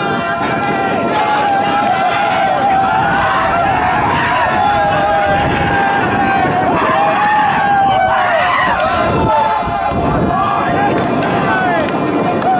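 A group of young players cheer and shout outdoors.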